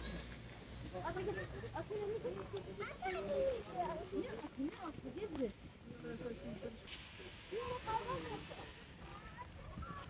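A young child talks nearby outdoors.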